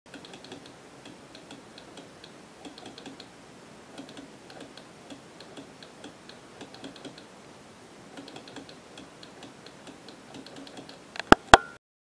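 A small switch clicks repeatedly.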